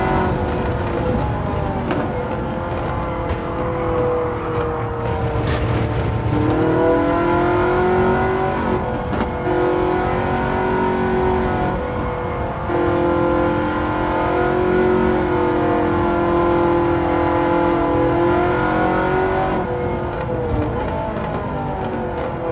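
A racing car engine roars, its pitch rising and falling as it shifts gears.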